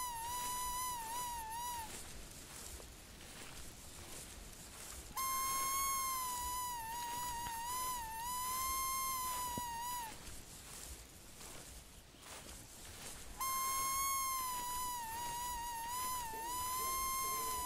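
Footsteps crunch through snow and brush.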